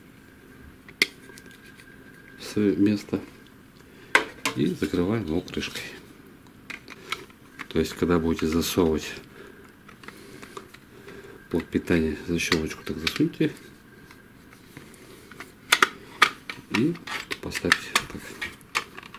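Hard plastic parts click and knock as they are handled close by.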